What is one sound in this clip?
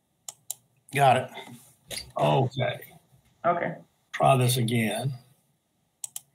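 Another older man speaks briefly over an online call.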